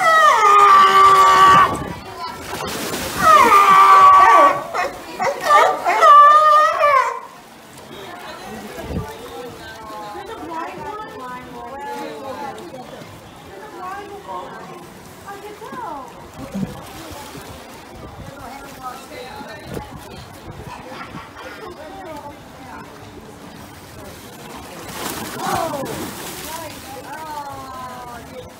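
Water splashes as sea lions swim and thrash.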